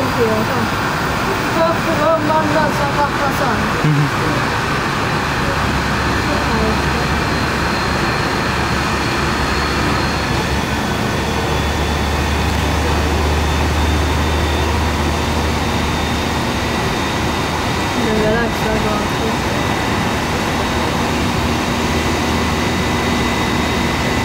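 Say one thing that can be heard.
A jet engine whines and roars steadily up close.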